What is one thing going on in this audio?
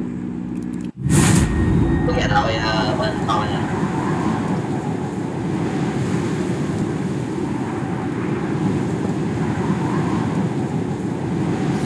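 Wind rushes loudly and steadily, as in a free fall.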